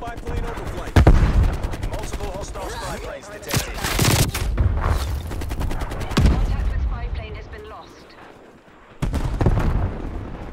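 Gunshots bang sharply in quick bursts.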